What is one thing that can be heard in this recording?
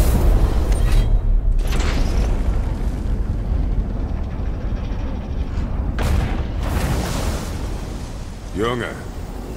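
A deep magical rumble hums and slowly fades.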